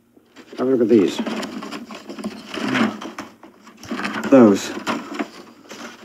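Paper rustles as a photograph is handed over.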